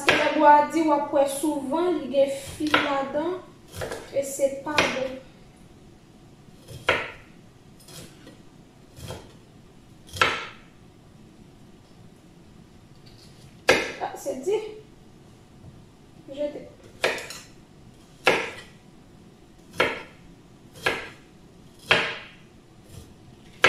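A knife chops vegetables on a wooden board with sharp, spaced knocks.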